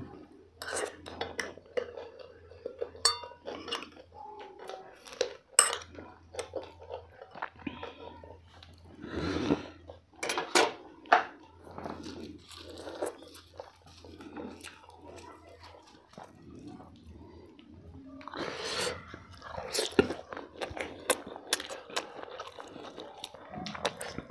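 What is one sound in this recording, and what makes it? A man chews and smacks his lips loudly, close to a microphone.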